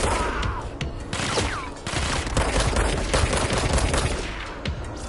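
A pistol fires repeated sharp shots.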